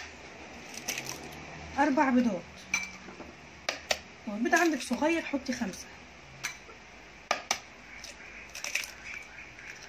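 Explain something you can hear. An egg cracks sharply against the rim of a plastic container.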